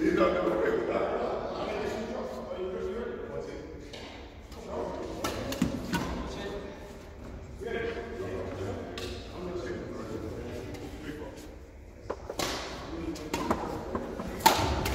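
Rackets hit a shuttlecock with sharp taps in a large echoing hall.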